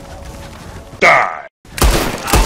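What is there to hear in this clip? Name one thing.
A gunshot cracks once outdoors.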